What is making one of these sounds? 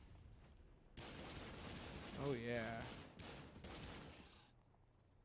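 A gun fires a series of quick shots.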